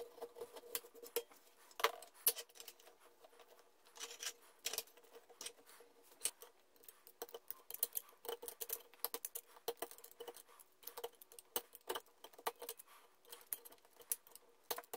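A file rasps against wood in short, scraping strokes.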